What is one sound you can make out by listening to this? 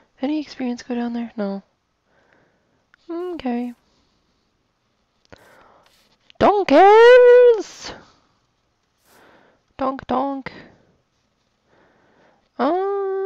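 A young woman talks with animation into a headset microphone, close by.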